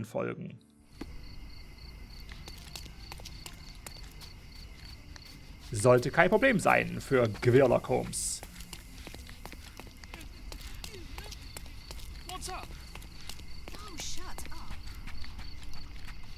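Footsteps run quickly over cobblestones outdoors.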